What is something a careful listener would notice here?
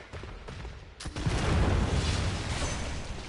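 A large beast attacks with a loud, heavy rumbling crash.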